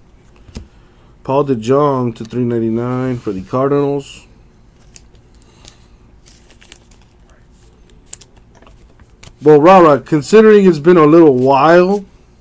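Plastic wrappers crinkle as card packs are opened.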